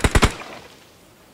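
Rapid gunshots crack loudly.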